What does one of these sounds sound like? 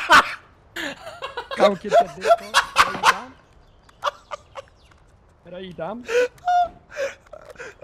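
A young man laughs loudly and heartily into a microphone.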